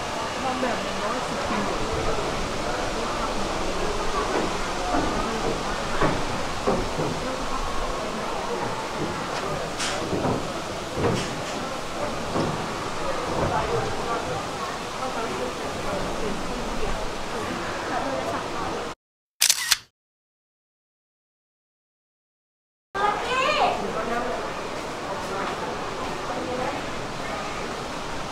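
Many people talk in a murmur around a large echoing hall.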